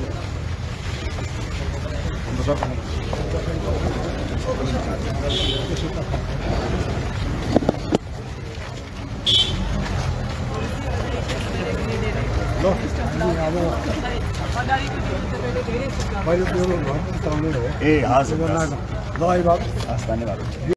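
A crowd of men chatter and talk over one another nearby.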